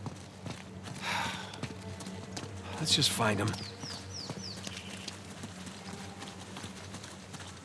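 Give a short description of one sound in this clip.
Footsteps run over stone and leafy ground.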